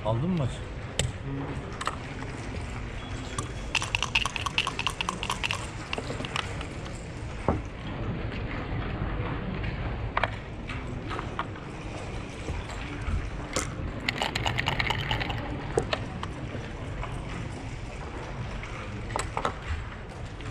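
Backgammon checkers click against a wooden board as they are moved.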